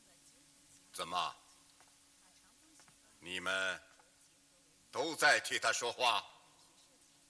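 A middle-aged man speaks firmly in short phrases nearby.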